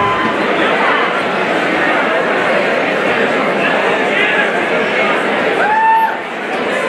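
A large crowd chatters and shouts loudly in an echoing hall.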